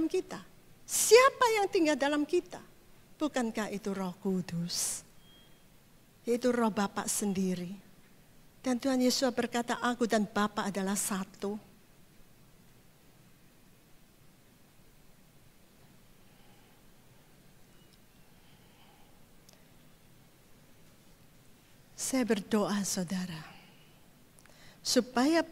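A woman speaks calmly into a microphone, heard through loudspeakers in a large hall, with pauses.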